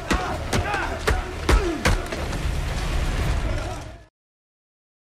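Fists thud hard against a padded punching bag.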